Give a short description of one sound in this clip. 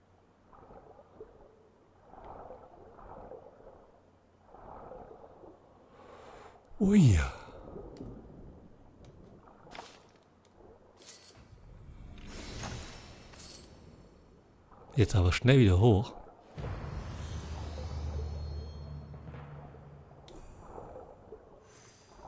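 Water swirls and bubbles as a diver swims underwater.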